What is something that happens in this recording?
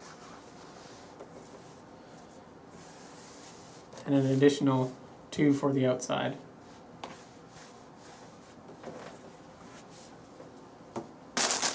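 Cloth rustles softly as it is folded.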